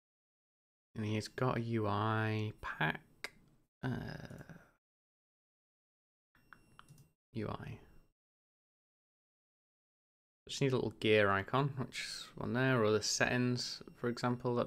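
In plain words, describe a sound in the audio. A young man talks calmly and casually into a close microphone.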